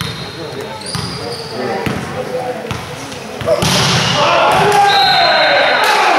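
A ball thuds as it is struck.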